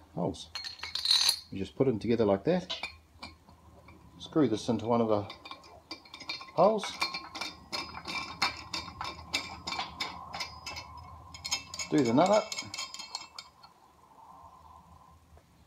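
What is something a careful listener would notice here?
Metal parts clink and scrape together.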